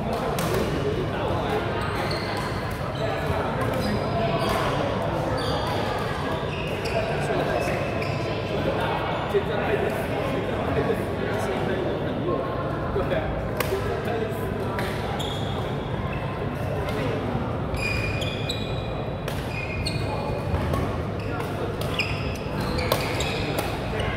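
A crowd of players chatters and calls out in the distance.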